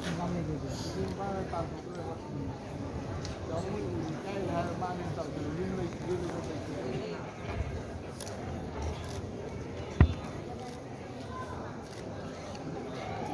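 Music plays through loudspeakers in a large hall.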